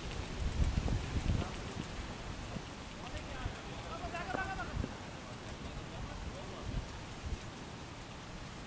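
Wind blusters across an open field.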